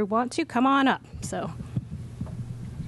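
A woman speaks with animation into a microphone over loudspeakers.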